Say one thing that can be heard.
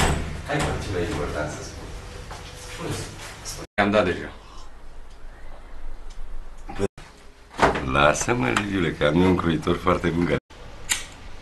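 An elderly man speaks warmly up close.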